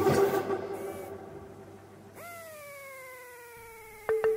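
A drill press bores into wood with a whirring hum.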